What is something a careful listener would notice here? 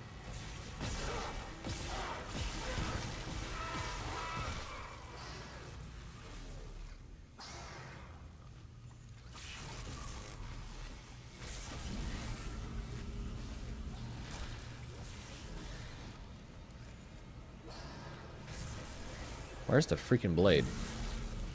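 Gunfire and sci-fi weapon blasts go off.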